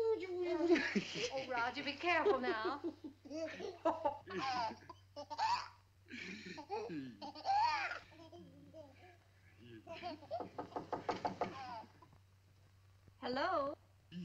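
A baby squeals and giggles.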